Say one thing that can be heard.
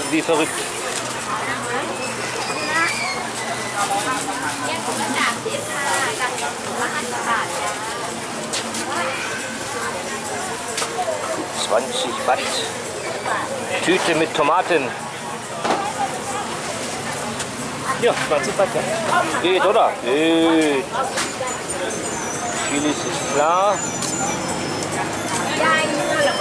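A busy outdoor market crowd of men and women chatters all around.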